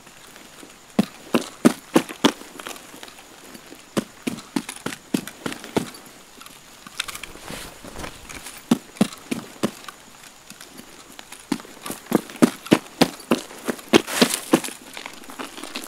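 Footsteps tread through grass and dirt at a walking pace.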